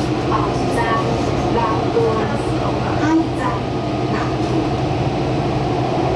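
An oncoming train rushes past close by.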